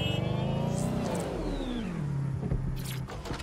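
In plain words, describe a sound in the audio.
A car engine winds down as the car slows to a stop.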